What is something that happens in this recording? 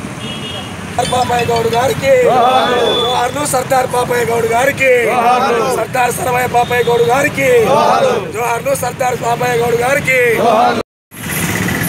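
A group of men chant back in unison.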